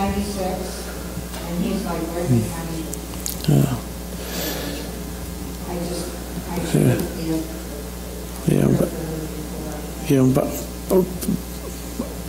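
An elderly man speaks calmly through a microphone in a room with some echo.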